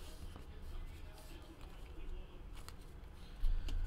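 Trading cards rustle and slide in hands.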